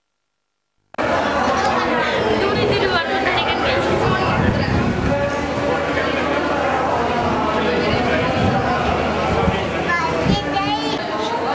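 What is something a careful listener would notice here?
A crowd of men and women chant and sing loudly nearby.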